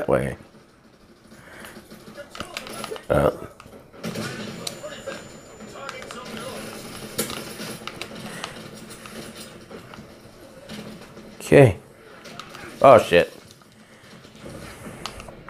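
Video game sounds of battle play through a television speaker.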